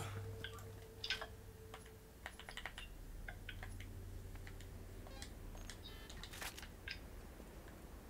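Menu clicks and beeps sound in quick succession.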